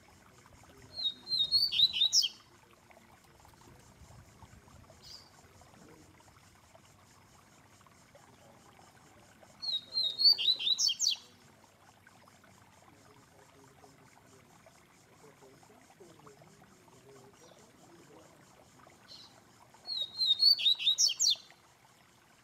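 A songbird sings short, bright, trilling phrases close by, with long pauses between them.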